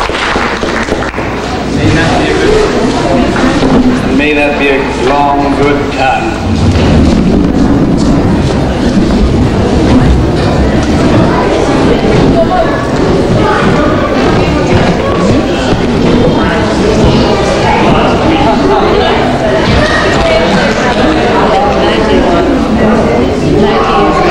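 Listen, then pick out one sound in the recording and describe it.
A crowd of men and women chatters in a room.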